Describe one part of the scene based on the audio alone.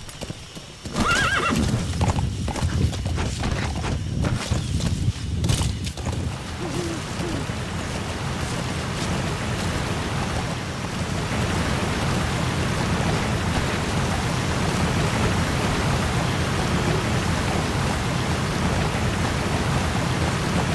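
A horse's hooves thud on rough ground.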